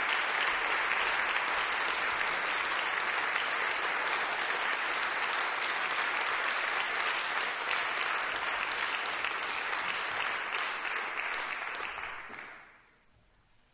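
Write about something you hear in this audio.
An audience applauds loudly in a large hall, then falls quiet.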